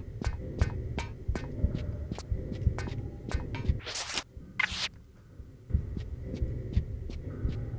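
Footsteps tap on a hard metal floor at a steady pace.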